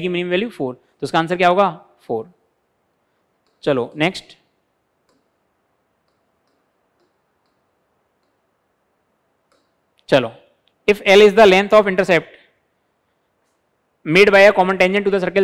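A man speaks clearly and steadily into a close microphone, pausing between phrases.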